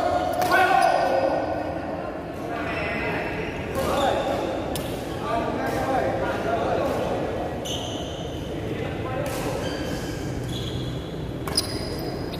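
Badminton rackets hit a shuttlecock back and forth in an echoing hall.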